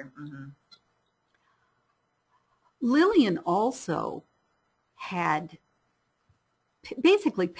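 A woman speaks calmly through a microphone, in short phrases with pauses.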